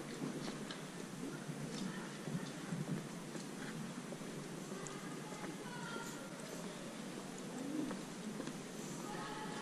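Footsteps tap along a stone pavement outdoors.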